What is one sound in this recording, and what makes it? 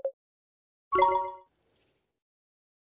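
A bright chime rings out once.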